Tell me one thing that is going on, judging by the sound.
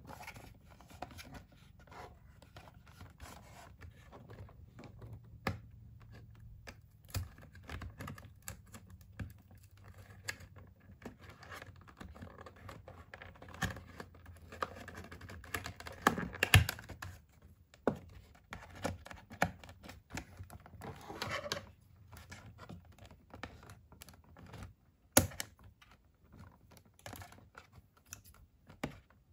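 Cardboard packaging rustles and crinkles as it is handled.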